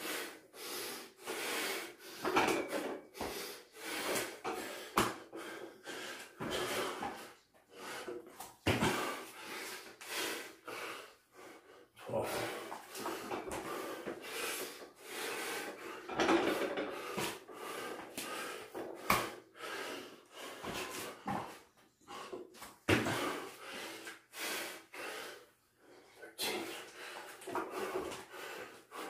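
A man breathes hard and puffs between efforts.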